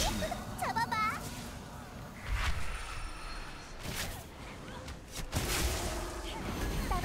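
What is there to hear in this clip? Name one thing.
Magic spells burst and whoosh in a fast game battle.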